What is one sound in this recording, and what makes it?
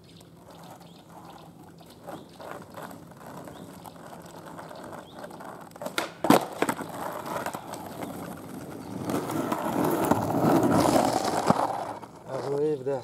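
Skateboard wheels roll and rumble on rough asphalt, growing louder as the board passes close.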